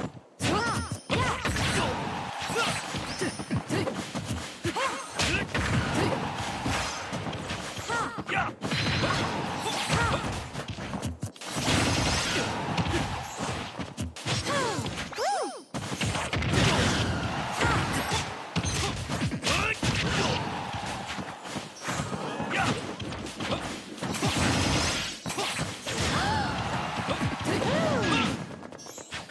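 Game sound effects of hits, blasts and slashes crackle and thump in quick bursts.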